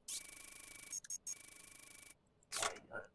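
A rapid electronic ticking sounds.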